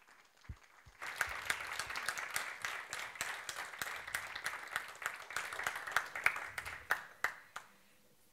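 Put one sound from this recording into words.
An audience applauds with lively clapping.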